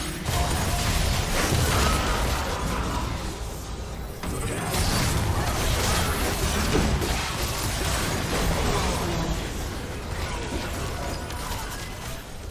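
Magic blasts and weapon strikes crackle and thud in a fast video game fight.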